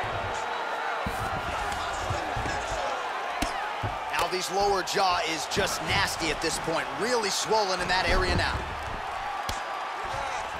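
Punches thud heavily against a body.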